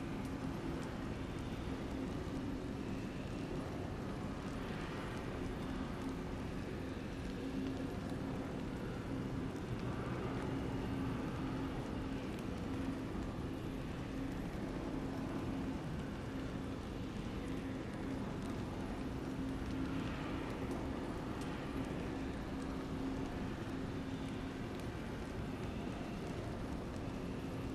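Water swirls and splashes inside a spinning ring.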